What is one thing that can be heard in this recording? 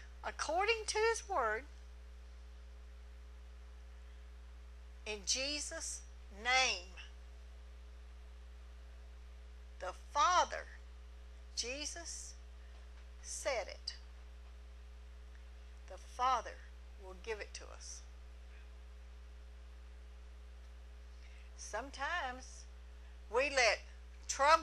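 A middle-aged woman speaks with animation through a microphone, in short phrases with pauses.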